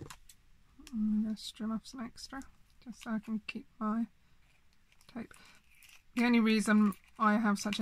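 Scissors snip through thin plastic.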